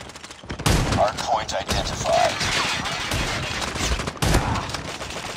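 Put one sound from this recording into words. A rifle fires with a loud, sharp crack.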